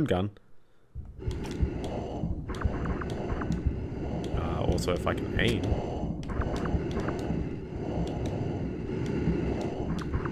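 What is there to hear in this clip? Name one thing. Water gurgles and bubbles with a low muffled rumble.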